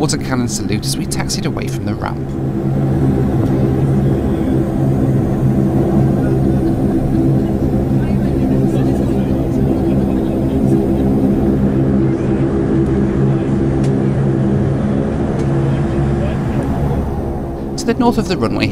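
A propeller engine drones steadily and loudly.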